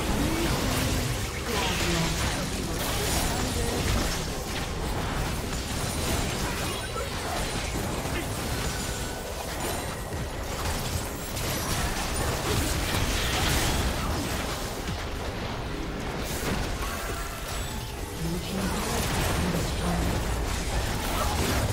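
Video game spells and melee hits crackle and clash in a fantasy battle.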